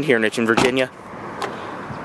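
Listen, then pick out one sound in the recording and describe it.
A car door handle clicks under a finger press.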